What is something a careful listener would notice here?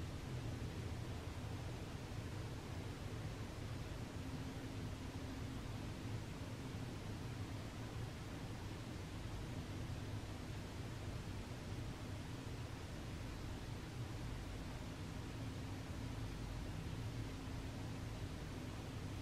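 A distant city hums with a steady low rumble.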